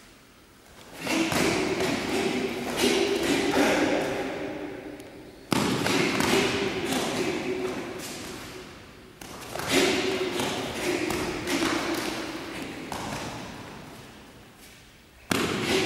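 A man shouts sharply as he strikes, echoing in a large hall.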